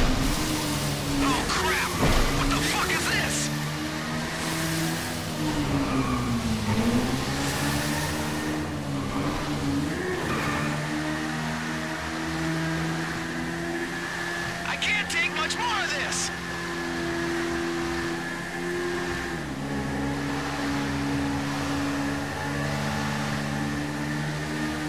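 A motorcycle engine drones and revs, rising and falling in pitch, echoing in a tunnel.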